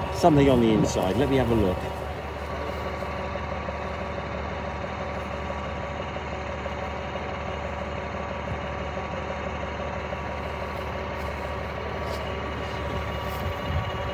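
A diesel engine idles steadily nearby.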